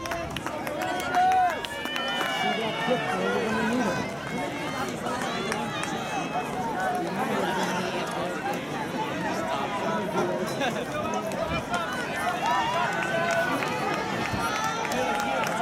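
A crowd of men and women chatter and cheer outdoors.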